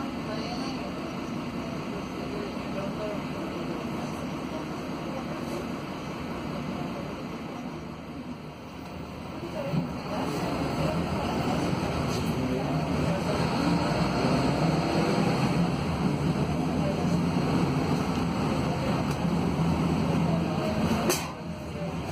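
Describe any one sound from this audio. A bus engine rumbles steadily from inside, growing louder as the bus speeds up.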